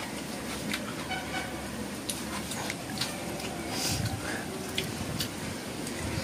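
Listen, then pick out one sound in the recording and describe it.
Food rustles and clicks against a plate.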